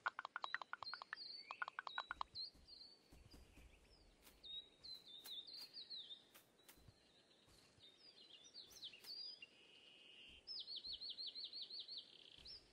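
Quick electronic game chirps and clicks sound in rapid bursts.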